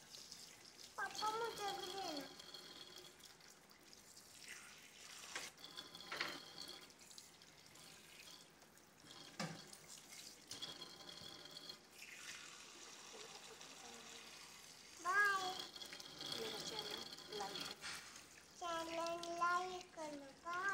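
A young child speaks in a high, sing-song voice close by.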